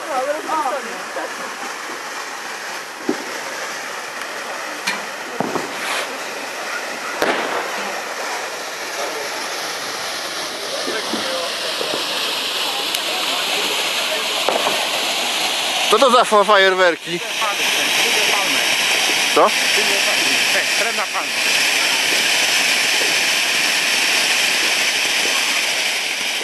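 A firework fountain hisses and roars steadily, growing louder.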